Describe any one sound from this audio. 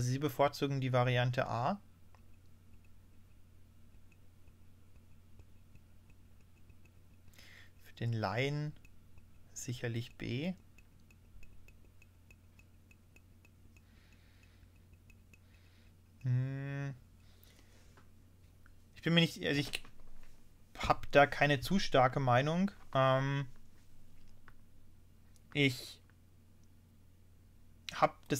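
A man talks calmly and close to a microphone, in short bursts with pauses.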